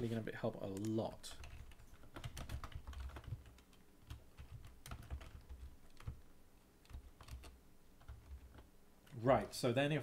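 Keyboard keys click rapidly as a man types.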